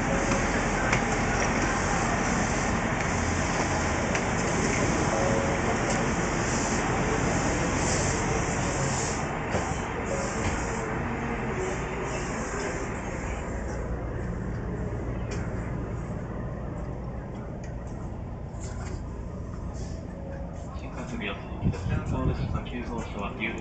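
A train rumbles steadily.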